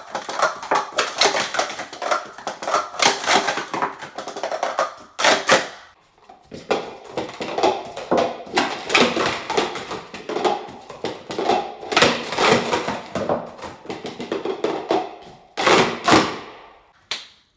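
Plastic cups clatter rapidly as they are stacked up and swept down.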